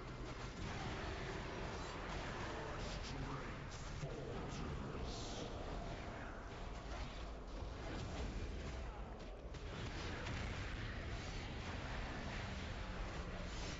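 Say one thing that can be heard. Spell effects crackle and boom during a game battle.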